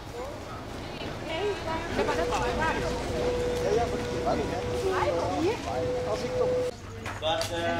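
Men and women chatter at a distance, outdoors.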